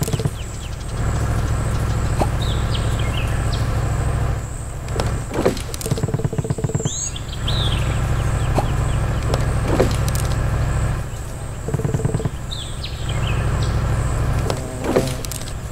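A small engine hums steadily in a video game.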